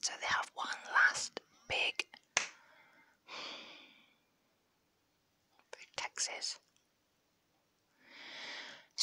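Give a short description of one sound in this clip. Fingers tap and rub on a small microphone.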